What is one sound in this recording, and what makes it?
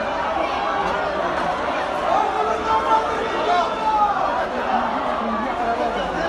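A crowd of men shouts and cries out outdoors.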